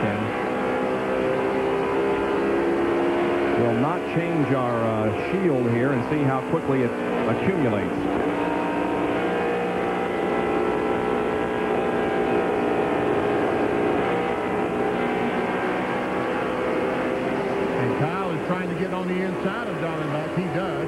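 A race car engine roars loudly at high, steady speed.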